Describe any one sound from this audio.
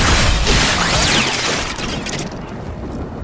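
A burst of gunfire and explosions crackles loudly and then fades.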